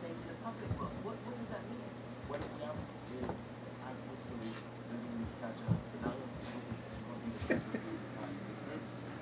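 A puppy knocks a toy about on a carpet.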